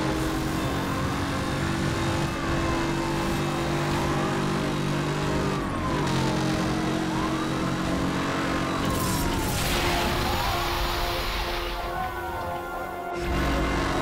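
Passing cars whoosh by one after another.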